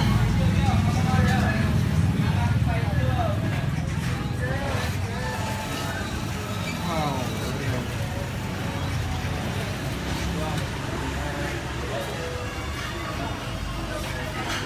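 A gas burner roars steadily.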